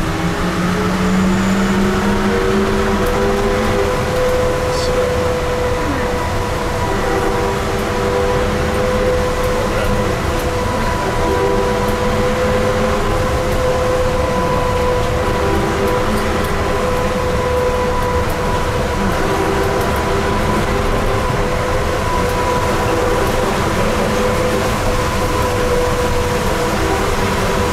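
Tyres roll on pavement with a steady roar.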